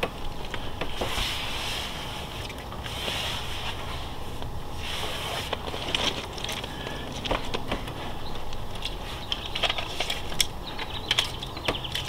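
A hand rubs firmly across a smooth panel with soft swishing strokes.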